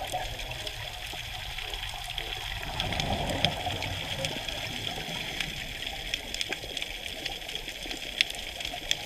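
Air bubbles gurgle and rush up from a diver's regulator.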